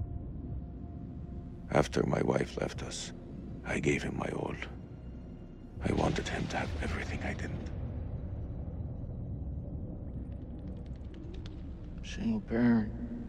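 A low rumbling drone fills the air.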